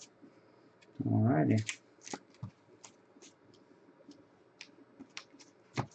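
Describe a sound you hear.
Glossy foil wrappers crinkle as a pack is torn open.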